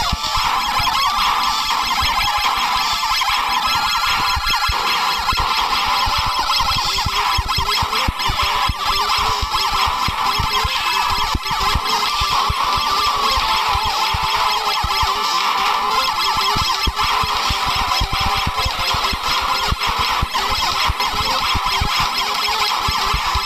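Electronic game music plays.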